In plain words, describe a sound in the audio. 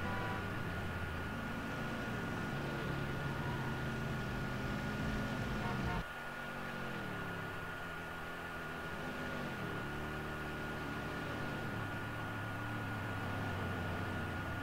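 A car engine roars and revs up and down through the gears.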